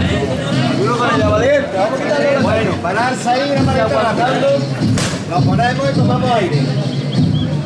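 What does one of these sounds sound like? Men call out loudly nearby.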